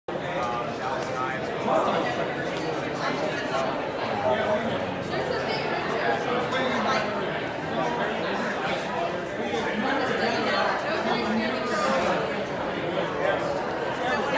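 A crowd of men and women talk over one another in a busy echoing hall.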